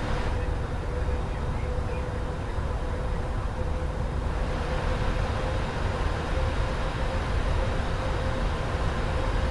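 A steady electronic hum drones in the cockpit.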